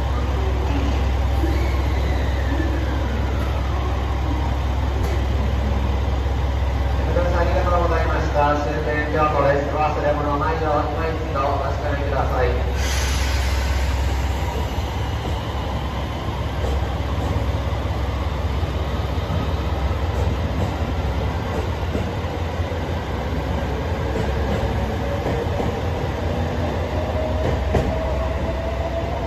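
A train engine rumbles low and steady.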